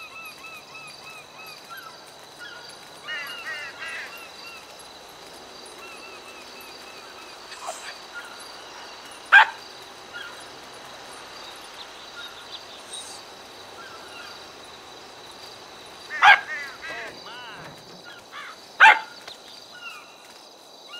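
A small animal's paws patter softly on the ground.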